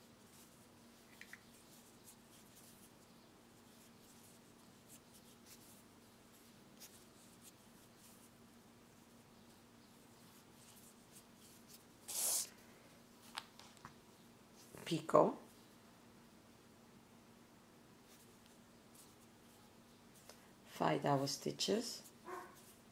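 Thread rustles softly as it is pulled and tightened by hand.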